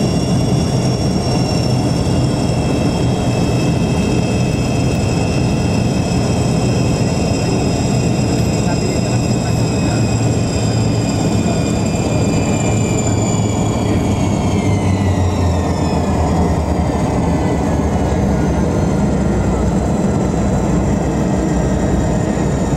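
Jet engines roar steadily from inside a plane cabin.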